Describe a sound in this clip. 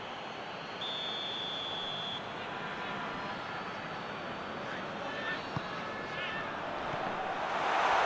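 A large stadium crowd roars steadily and swells louder near the end.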